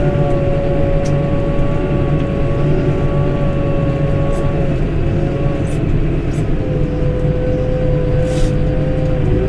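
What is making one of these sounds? A control lever clicks a few times.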